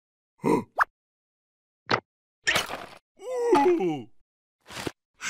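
A cartoon creature squeals and babbles in a high, squeaky voice.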